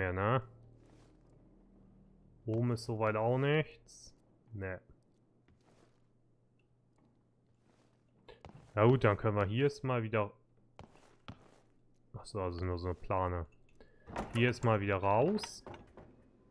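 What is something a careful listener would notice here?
Footsteps thud slowly on wooden boards.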